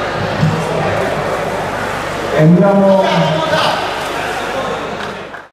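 A crowd claps and cheers in a large echoing hall.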